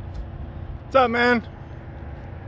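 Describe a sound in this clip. A man calls out loudly from a short distance.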